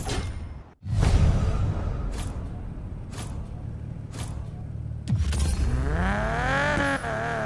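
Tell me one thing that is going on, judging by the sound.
A sports car engine revs loudly and rises in pitch.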